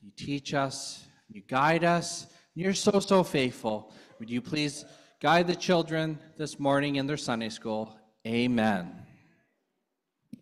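A young man speaks calmly into a microphone in a large echoing hall.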